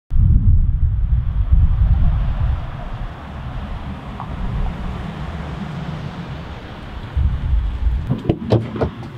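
A pickup truck towing a trailer drives past with a low engine rumble and road noise.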